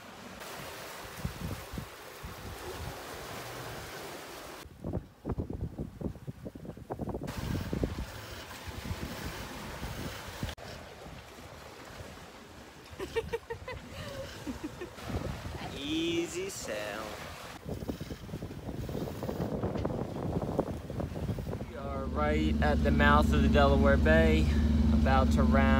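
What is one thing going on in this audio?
Wind buffets the microphone in strong gusts.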